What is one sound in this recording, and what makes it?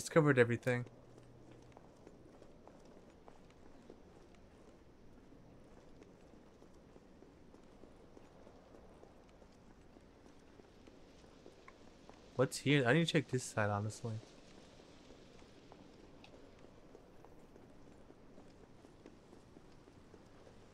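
Footsteps tap on a stone pavement.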